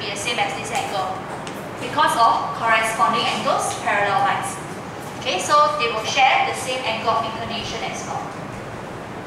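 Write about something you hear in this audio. A young woman speaks calmly through a muffled microphone.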